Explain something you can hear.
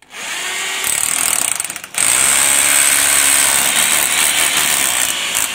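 A cordless drill whirs as it drives into wood.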